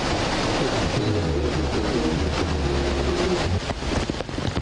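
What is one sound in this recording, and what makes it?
Floodwater rushes and splashes over a weir.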